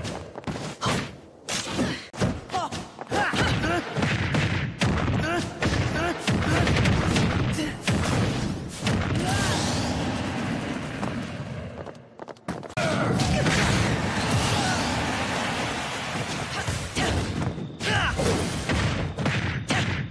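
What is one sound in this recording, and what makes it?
Video game fighters trade hits with sharp impact and slash effects.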